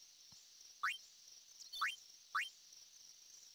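Short rising electronic chimes ring out one after another.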